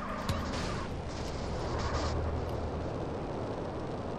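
A jetpack roars steadily.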